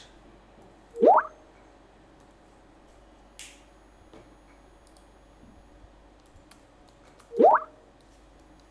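A short rising chime sounds for an incoming message.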